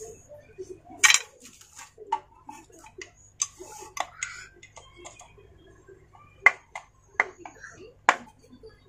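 Metal parts clink and knock as they are handled.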